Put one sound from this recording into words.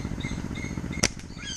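A slingshot's rubber bands snap as a shot is released.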